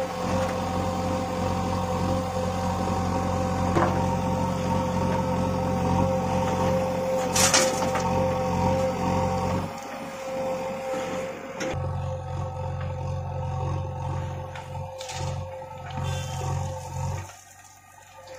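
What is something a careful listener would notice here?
A backhoe loader's diesel engine rumbles and whines steadily nearby.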